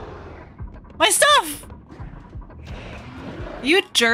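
A young woman exclaims with animation, close to a microphone.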